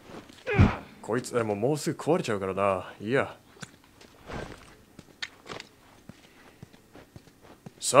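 Footsteps scuff on a concrete floor.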